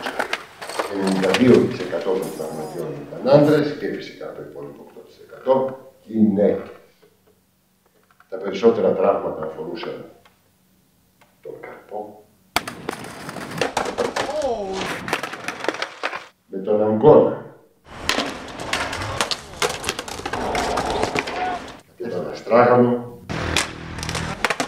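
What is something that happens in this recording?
Skateboard wheels roll and clatter on concrete.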